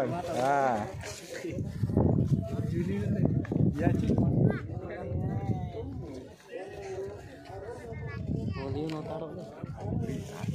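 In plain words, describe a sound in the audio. A group of people chatter in the open air.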